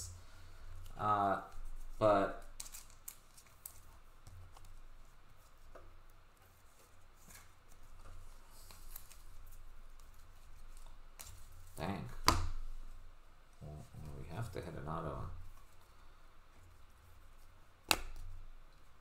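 Glossy trading cards rustle and slide against each other as they are handled.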